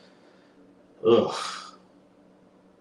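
A man speaks briefly and loudly into a close microphone.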